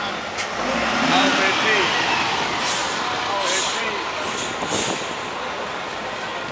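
A large bus engine rumbles close by.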